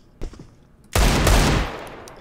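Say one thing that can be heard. A pistol fires a loud shot.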